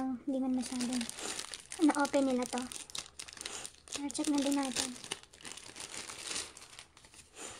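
Hands crinkle plastic wrapping.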